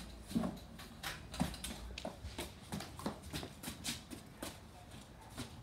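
A child's footsteps patter quickly across padded mats.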